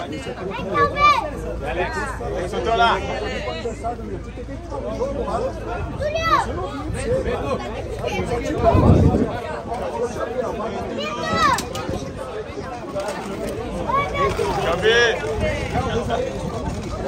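A crowd of fans shouts and cheers close by.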